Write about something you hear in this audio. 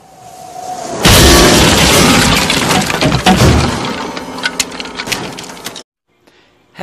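A loud explosion booms and roars, with debris clattering down.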